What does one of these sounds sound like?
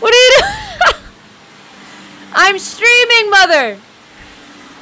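A young woman laughs loudly and shrilly close to a microphone.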